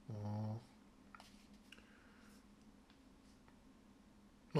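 Playing cards rustle and click softly as they are shuffled and rearranged in the hands.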